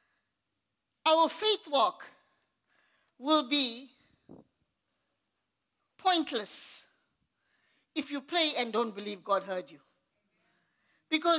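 A woman speaks with animation, pausing between phrases.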